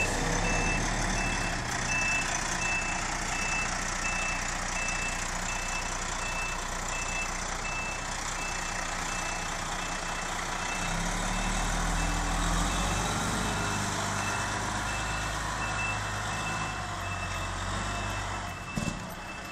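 A fire engine's diesel motor rumbles nearby.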